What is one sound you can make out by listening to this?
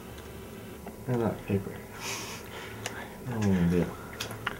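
A young man laughs and talks quietly up close.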